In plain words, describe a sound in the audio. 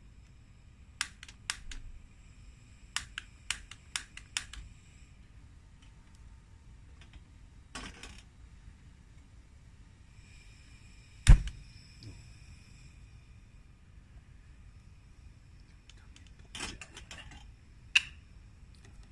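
Small objects click and tap sharply under a man's hands.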